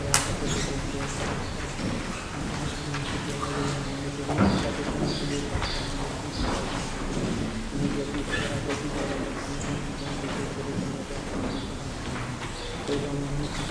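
Footsteps tap across a wooden floor.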